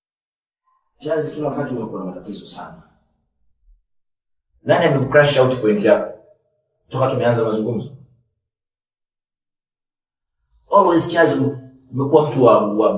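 Men talk calmly and closely, taking turns with pauses between.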